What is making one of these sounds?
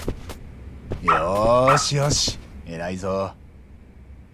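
A dog whines close by.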